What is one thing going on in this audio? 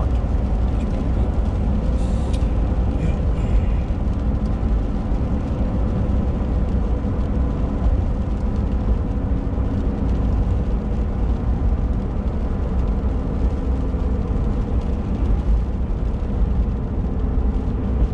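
A car engine hums steadily while driving.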